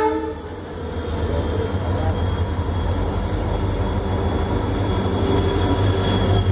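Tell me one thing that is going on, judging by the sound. A passing locomotive roars by right alongside.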